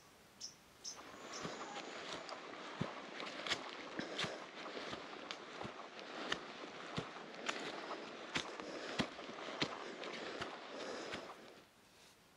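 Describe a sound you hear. Footsteps crunch over dry leaves and grass.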